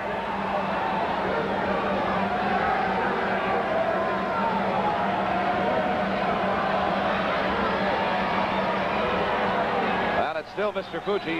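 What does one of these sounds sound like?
A large crowd roars and cheers in a big echoing arena.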